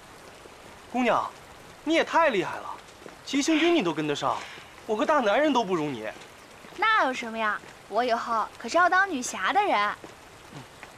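A young woman speaks cheerfully nearby.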